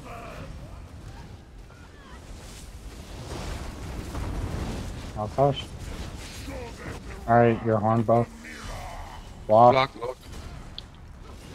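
Magic blasts and clashing weapons ring out in a battle.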